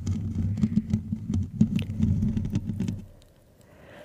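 Fingertips scratch and tap on a microphone's foam cover, close and muffled.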